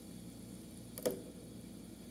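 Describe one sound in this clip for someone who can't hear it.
A fidget spinner clicks down onto a hard surface.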